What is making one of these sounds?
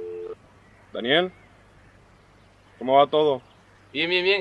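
A young man speaks into a phone close by.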